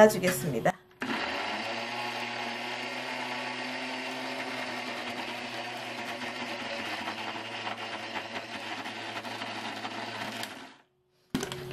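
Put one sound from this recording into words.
A blender whirs steadily as it chops leaves.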